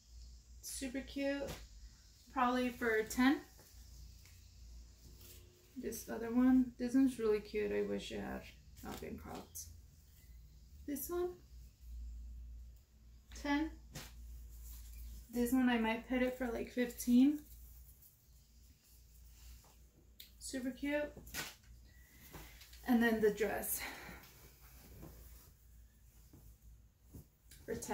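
Fabric rustles as clothes are handled.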